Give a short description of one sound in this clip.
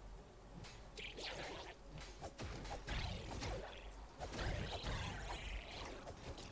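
Video game weapons clash and explode in a fight.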